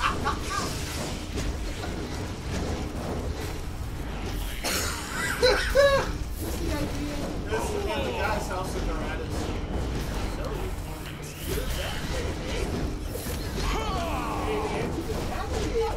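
Young men talk and laugh excitedly through a microphone.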